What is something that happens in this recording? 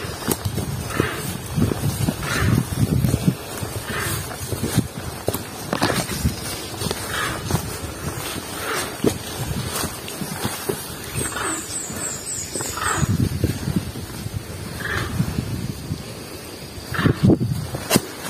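Footsteps crunch and rustle on a leafy forest path.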